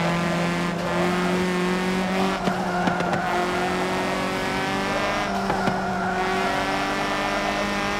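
Tyres screech on tarmac through the bends.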